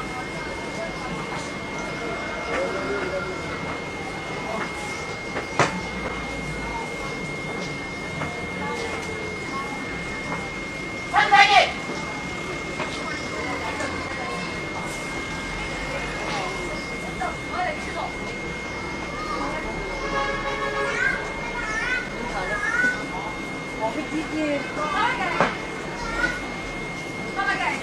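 Men and women chatter nearby in a busy outdoor crowd.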